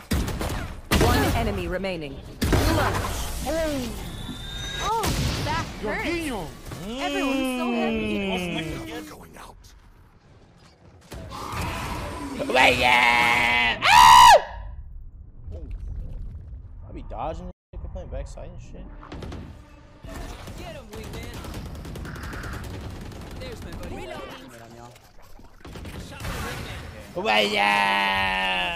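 A young man talks excitedly into a headset microphone.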